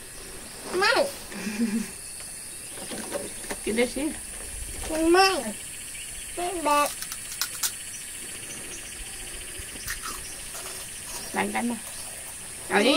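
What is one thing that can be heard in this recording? A young woman talks softly and playfully close by.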